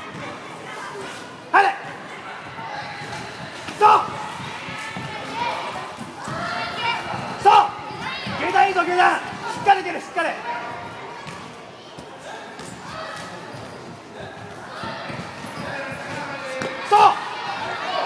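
A crowd of children shouts and cheers in a large echoing hall.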